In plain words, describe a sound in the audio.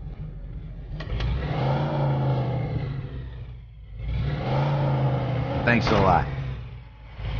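A car engine revs up loudly several times.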